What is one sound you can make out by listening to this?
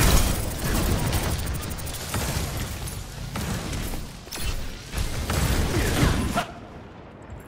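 Gunfire and energy blasts crackle rapidly.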